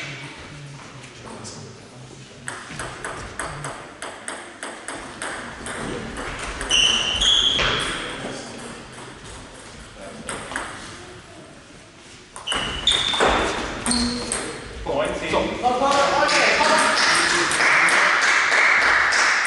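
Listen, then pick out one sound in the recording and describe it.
Table tennis balls click rapidly back and forth on a table and paddles in a large echoing hall.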